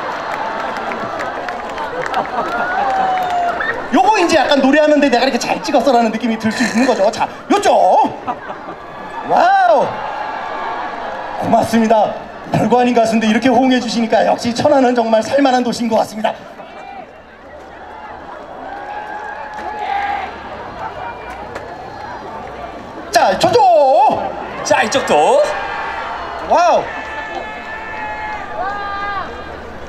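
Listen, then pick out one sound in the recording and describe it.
A man talks and sings with animation through loudspeakers.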